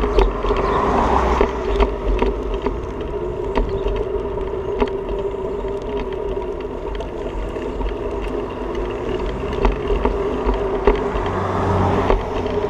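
Bicycle tyres hum steadily on pavement.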